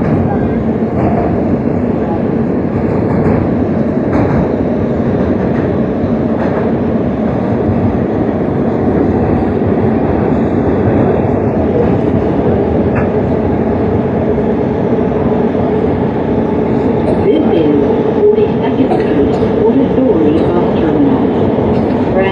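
A subway train rumbles loudly and steadily as it rushes through a tunnel.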